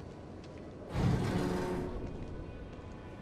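A heavy metal door grinds and rumbles open.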